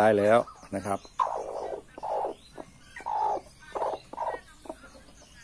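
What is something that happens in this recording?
A broody hen clucks and growls close by.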